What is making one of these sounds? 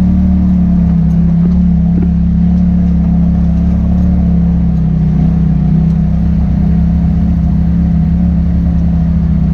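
An off-road vehicle's engine drones steadily at close range.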